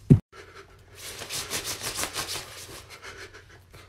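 A young woman shivers and moans.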